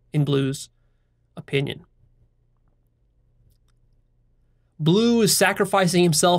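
A man speaks calmly and closely into a microphone, pausing between phrases.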